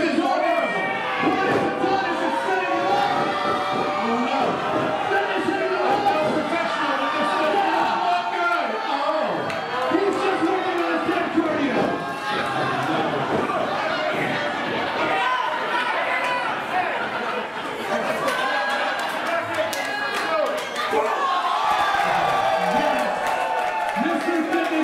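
A crowd of men and women shouts and cheers loudly in an echoing hall.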